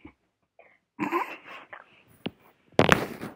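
A young woman laughs behind her hand.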